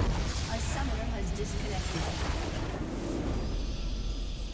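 A game's battle effects burst and crash loudly.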